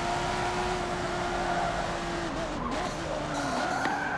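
Tyres screech while cornering.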